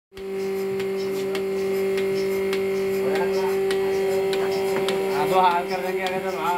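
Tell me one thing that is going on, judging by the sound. A milking machine pulsator clicks in a steady rhythm.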